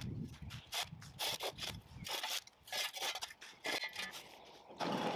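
A shovel scrapes and chops through soil and turf in short bursts.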